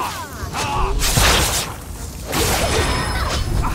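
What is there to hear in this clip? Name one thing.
A magic spell bursts with loud whooshing blasts.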